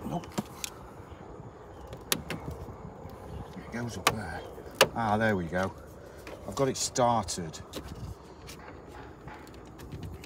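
A plastic tool clicks and scrapes against a car grille.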